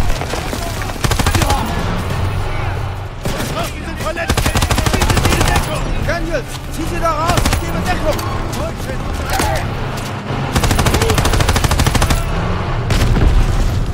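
A submachine gun fires in rapid bursts, close by.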